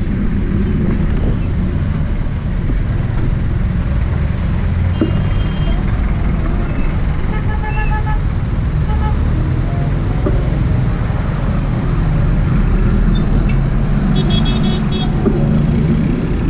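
Motorcycles and a bus rumble in traffic nearby.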